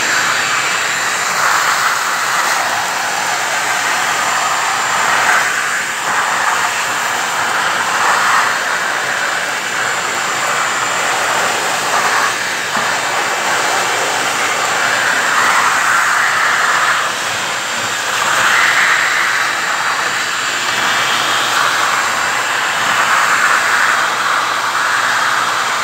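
Grit and debris rattle up through a vacuum hose.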